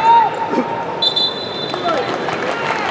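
A referee blows a whistle.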